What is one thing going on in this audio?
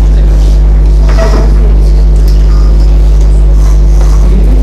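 A young man speaks into a microphone over a loudspeaker.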